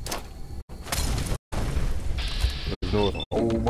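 A fire bomb bursts into a roaring blaze.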